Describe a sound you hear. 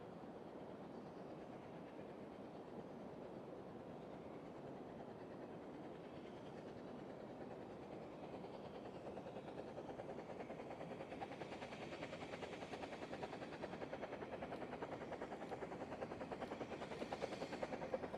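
A steam locomotive chuffs rhythmically in the distance, growing louder as it approaches.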